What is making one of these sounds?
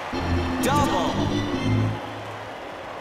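A short cheerful game jingle plays.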